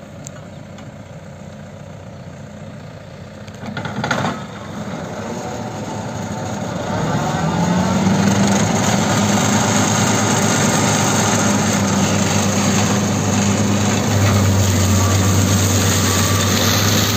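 A tractor engine hums steadily and grows louder as it approaches.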